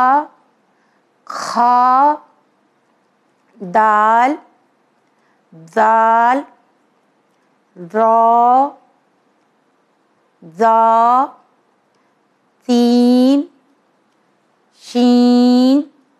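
A young woman clearly pronounces single syllables one at a time into a microphone, with pauses between.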